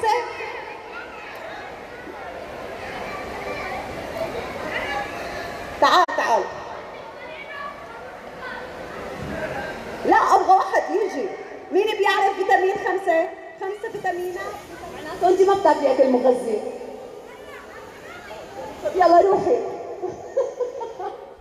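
A woman sings into a microphone over loudspeakers in a large echoing hall.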